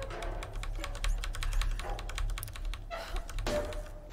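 A metal valve wheel squeaks as it turns.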